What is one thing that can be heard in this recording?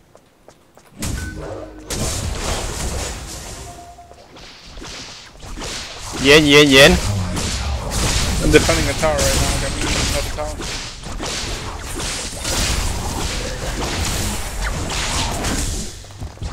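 Video game weapons whoosh and clash in a fast fight.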